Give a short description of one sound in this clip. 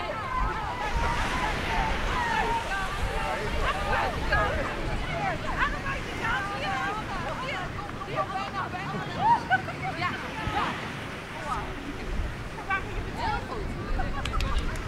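Wind buffets the microphone.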